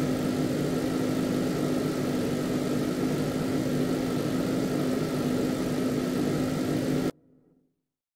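A truck engine drones steadily and then cuts off.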